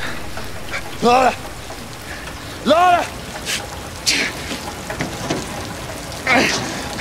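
An older man shouts out loudly in strain.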